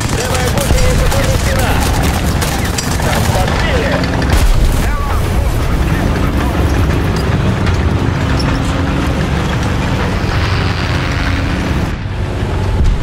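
Tank tracks clank and squeal.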